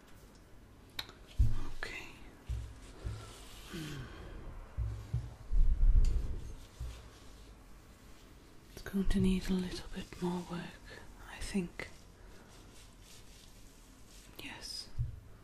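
Fabric rustles close by.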